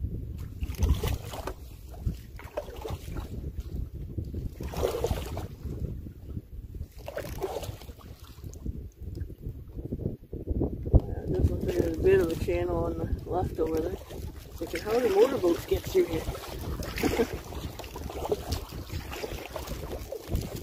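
Small waves lap against a canoe's hull.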